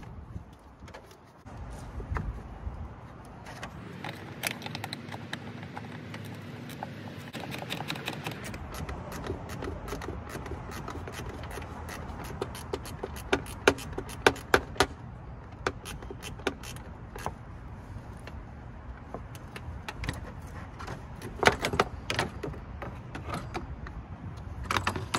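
A gloved hand clicks and knocks on plastic engine parts.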